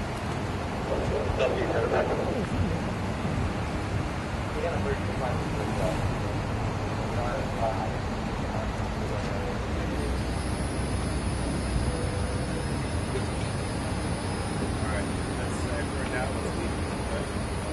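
A woman talks briefly nearby.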